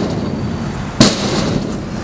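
A stunt scooter deck clacks against a concrete ramp.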